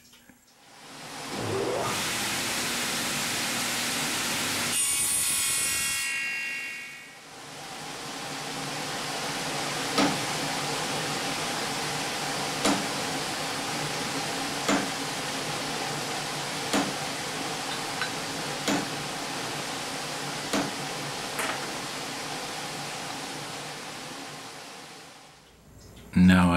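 A table saw motor whirs steadily.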